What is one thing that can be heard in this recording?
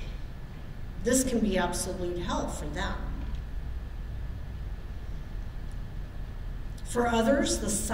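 A middle-aged woman speaks calmly into a microphone, heard through a loudspeaker in a large room.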